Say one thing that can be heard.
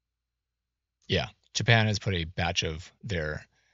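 A man speaks clearly into a microphone.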